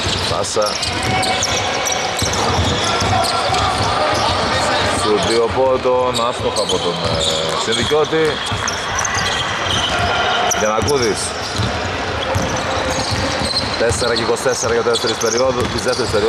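A basketball bounces with hollow thuds on a wooden floor.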